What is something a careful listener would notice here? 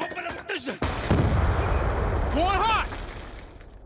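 A gun fires loudly in a burst.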